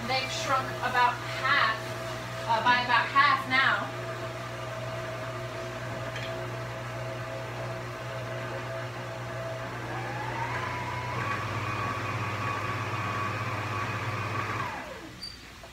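A stand mixer whirs steadily, then speeds up and stops.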